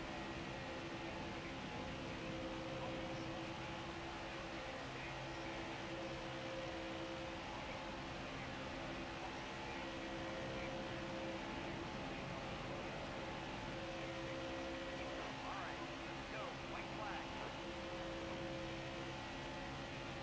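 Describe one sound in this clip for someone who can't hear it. Tyres hum on the track.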